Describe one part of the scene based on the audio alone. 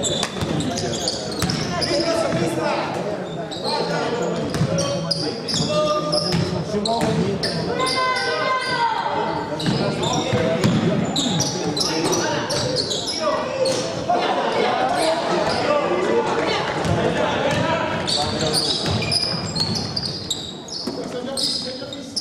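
A basketball bounces on a wooden court in an echoing sports hall.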